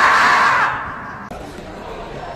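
A marmot screams loudly.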